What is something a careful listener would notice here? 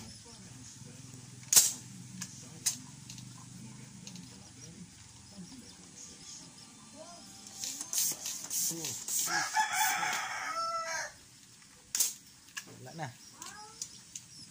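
Metal clicks and clacks sharply as an air rifle is handled and cocked close by.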